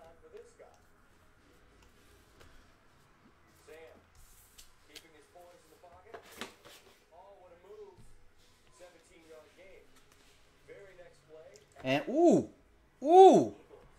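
Cards shuffle and flick softly in hands.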